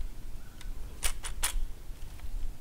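A gun's lock clicks.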